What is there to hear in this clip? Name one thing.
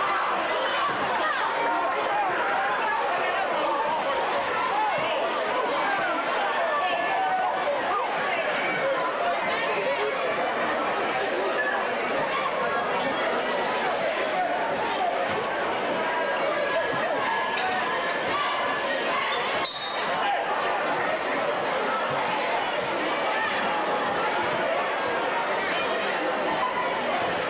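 A large crowd chatters and cheers steadily in an echoing gym.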